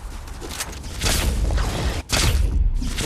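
A crackling electric burst erupts with a loud whoosh.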